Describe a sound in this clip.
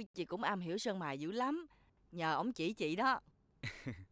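A middle-aged woman talks with animation close by.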